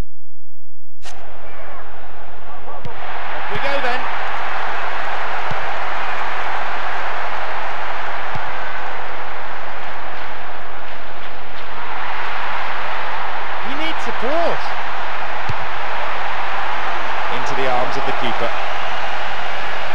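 A game's stadium crowd roars steadily, swelling at times.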